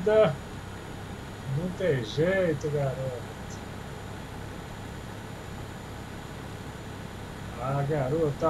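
A middle-aged man talks calmly and cheerfully into a close microphone.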